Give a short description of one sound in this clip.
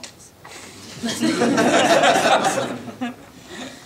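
A group of men laugh heartily.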